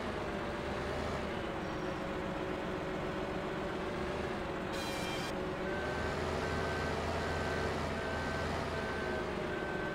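A chainsaw head buzzes as it cuts through a tree trunk.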